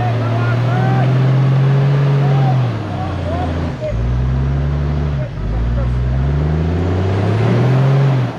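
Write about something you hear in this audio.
Tyres churn and splash through thick mud.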